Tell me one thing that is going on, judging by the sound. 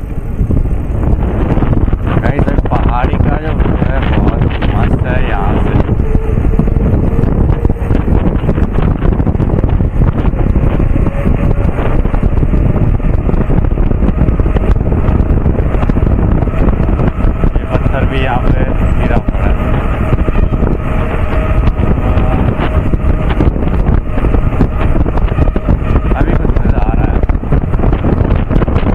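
Wind rumbles loudly against the vehicle.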